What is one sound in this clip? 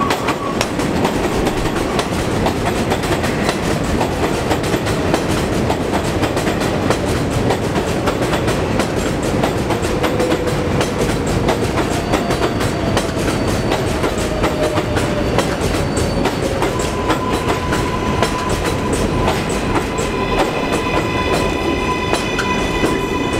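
A subway train rumbles loudly past, its wheels clattering over rail joints.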